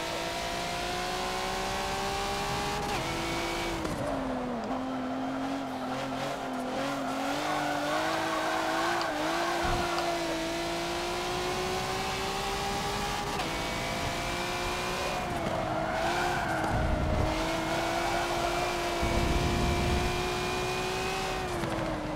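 A racing car engine roars steadily, its pitch rising as it speeds up and dropping with each gear change.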